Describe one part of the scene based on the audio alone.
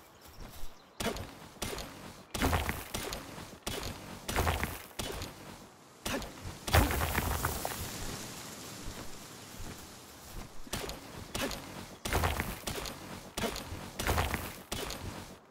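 A pickaxe strikes rock with sharp, repeated cracks.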